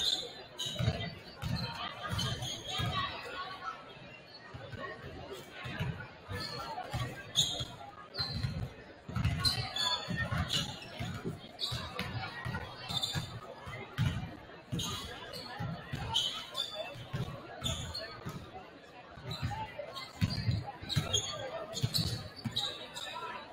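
Basketballs bounce on a wooden court in a large echoing gym.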